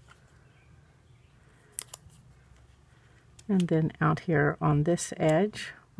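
Paper rustles softly as a sticker backing is peeled away.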